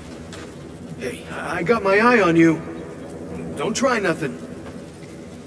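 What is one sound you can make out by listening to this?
A man speaks warily and firmly, close by.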